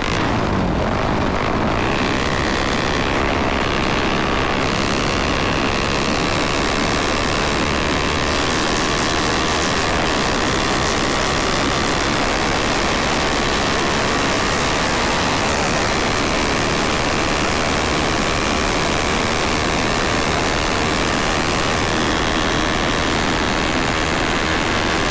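Wind buffets loudly, as if riding fast outdoors.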